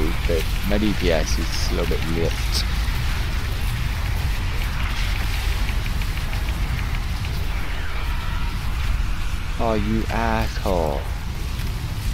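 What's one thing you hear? A man speaks into a close microphone with animation.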